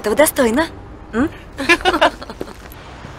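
A young woman laughs and talks brightly up close.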